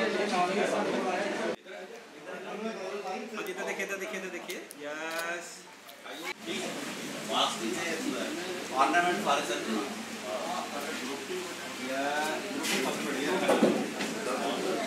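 Several men talk and murmur together nearby.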